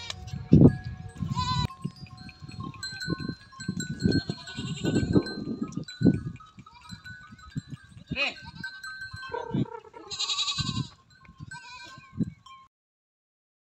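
A herd of goats bleats loudly, close by, outdoors.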